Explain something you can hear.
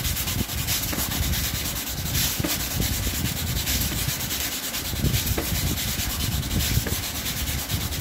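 A knife scrapes and squeaks as it cuts through foam.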